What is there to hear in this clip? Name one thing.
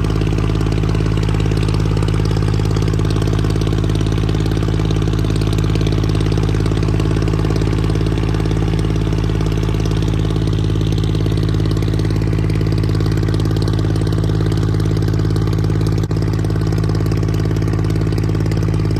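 A boat engine drones steadily at close range.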